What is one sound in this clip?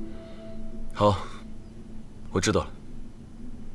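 A young man speaks calmly and briefly, close by.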